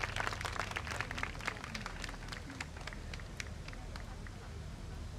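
Wooden clappers clack in a quick rhythm.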